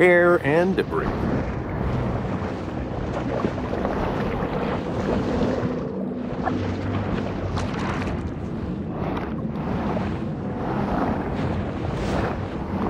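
Water murmurs and swirls in a steady, muffled rush.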